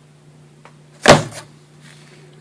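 A cardboard box is set down on a hard surface with a thud.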